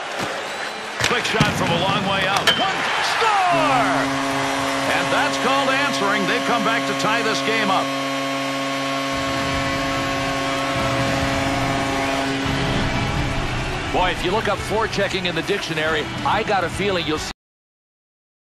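A crowd cheers loudly in a large arena.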